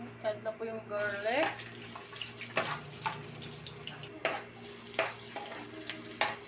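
Chopped garlic sizzles in hot oil in a pan.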